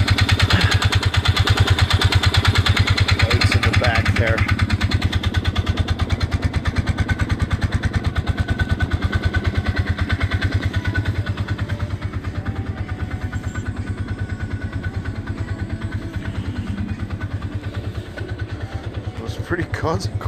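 An engine runs with a fast, steady throbbing close by.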